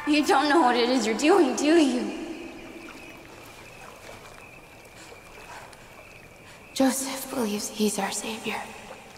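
A young woman speaks slowly and menacingly, close by.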